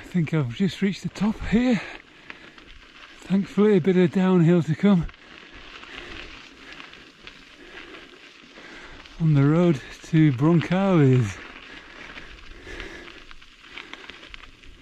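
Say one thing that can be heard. Footsteps crunch on a gravel track.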